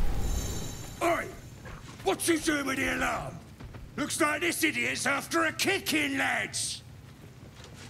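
A gruff man speaks with annoyance, close up.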